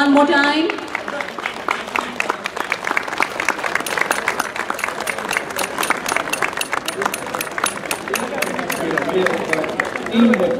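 A crowd applauds with steady clapping in a large room.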